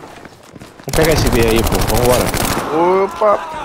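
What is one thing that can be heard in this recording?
A machine gun fires a rapid burst close by.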